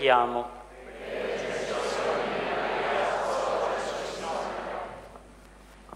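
A large congregation responds together in unison in an echoing hall.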